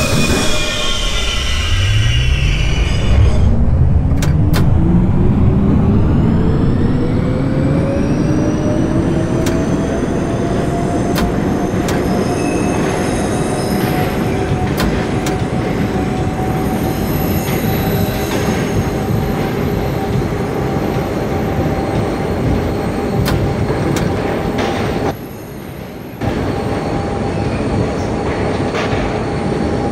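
Train wheels rumble and clack over rail joints.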